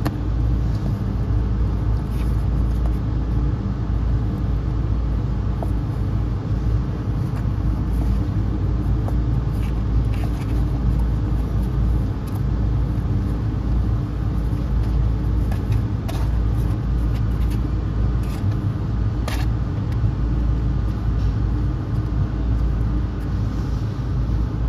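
Kittens scratch and scrabble on cardboard.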